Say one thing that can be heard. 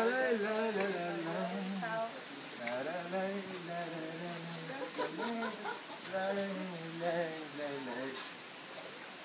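An elderly man speaks animatedly close by.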